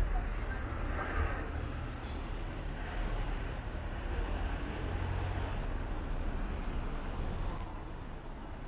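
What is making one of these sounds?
A van drives slowly along the street.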